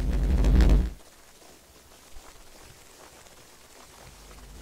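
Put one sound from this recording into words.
Firework sparks crackle faintly in the distance.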